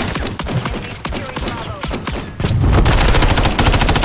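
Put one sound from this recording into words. A rifle fires rapid bursts of gunshots at close range.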